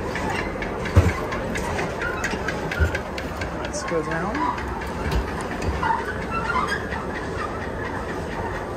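Footsteps thud on a moving walkway.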